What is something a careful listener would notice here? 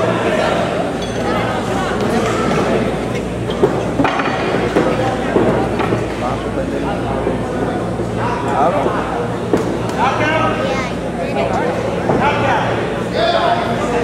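Men shout to the fighters from ringside.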